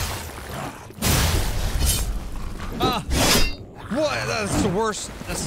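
Swords clash and strike during a fight.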